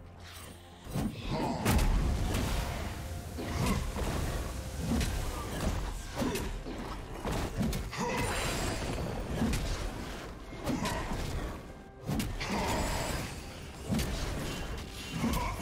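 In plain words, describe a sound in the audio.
Magic spells whoosh and crackle as video game characters fight.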